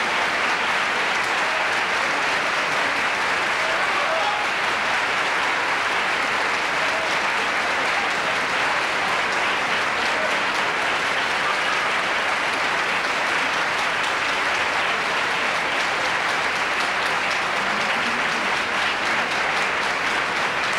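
A large audience applauds steadily in a big hall.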